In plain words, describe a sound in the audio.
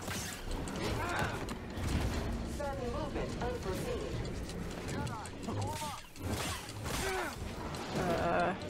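A lightsaber hums and whooshes as it swings.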